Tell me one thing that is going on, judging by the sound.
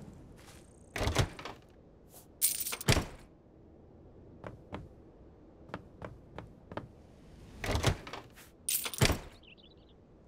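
A wooden chest lid creaks open and thumps.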